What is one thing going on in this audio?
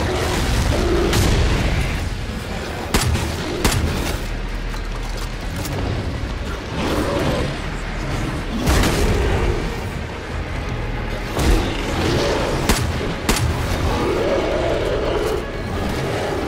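Monsters snarl and roar nearby.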